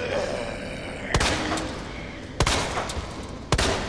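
A handgun fires several sharp shots.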